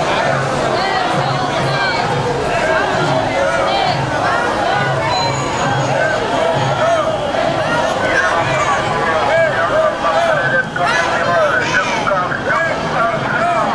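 A large crowd of men and women chants and shouts outdoors.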